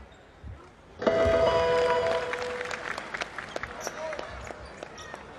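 A crowd cheers loudly in a large echoing arena.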